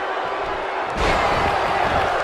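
A heavy body thuds onto a wrestling mat.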